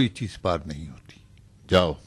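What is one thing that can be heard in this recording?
A middle-aged man speaks sternly and close by.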